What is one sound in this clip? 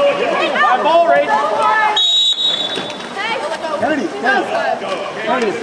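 Swimmers splash through water.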